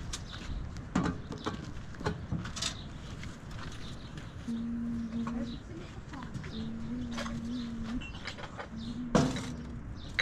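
Objects knock against a metal truck bed.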